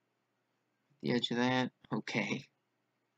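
A middle-aged man speaks calmly to the listener.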